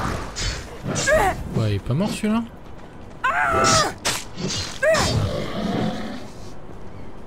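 Blades clash and strike in a fierce fight.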